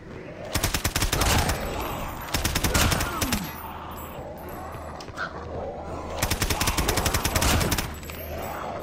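A gun fires in rapid bursts of automatic shots.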